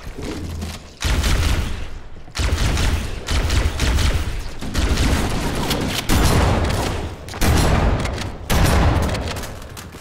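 A gun fires in loud, booming blasts.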